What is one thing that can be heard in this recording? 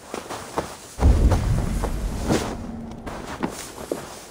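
A deep whooshing rumble swells and slowly fades.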